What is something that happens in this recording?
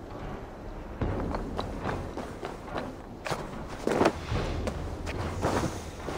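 Footsteps crunch quickly on snow and roof tiles.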